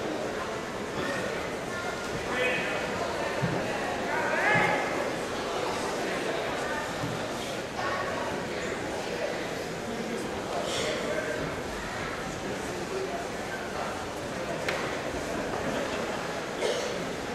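Wrestlers thump and scuffle on a wrestling mat.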